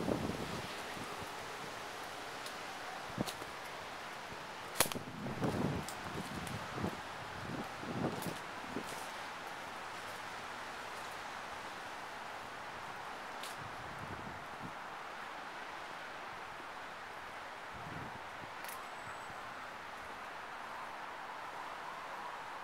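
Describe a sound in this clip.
Wind rustles the leaves of street trees outdoors.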